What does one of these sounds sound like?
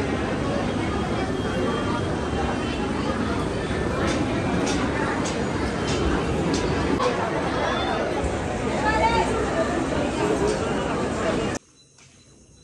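A crowd murmurs and chatters in a busy, echoing hall.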